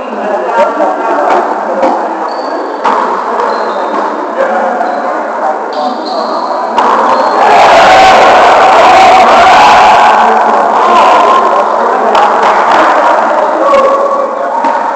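Adult men call out and shout across a large echoing gym.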